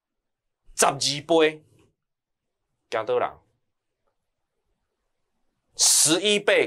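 A young man speaks calmly and clearly into a close microphone, in short bursts with pauses.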